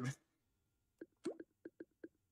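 Short electronic clicks and blips sound from a game menu.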